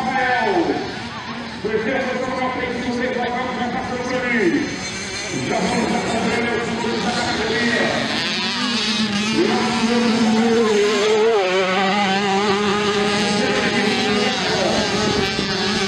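Dirt bike engines rev and whine, rising and falling in pitch.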